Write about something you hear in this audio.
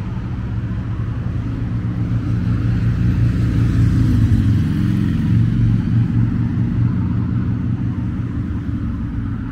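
A vehicle passes by, its engine growing louder and then fading.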